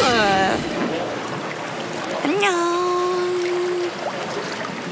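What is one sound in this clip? A young woman speaks cheerfully close by.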